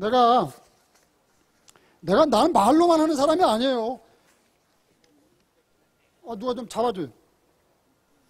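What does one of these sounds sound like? An elderly man chants in a drawn-out, sing-song voice through a microphone.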